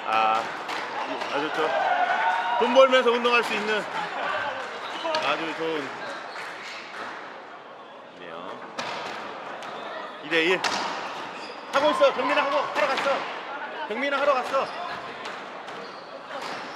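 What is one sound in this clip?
A squash ball smacks against a wall with sharp, echoing hits.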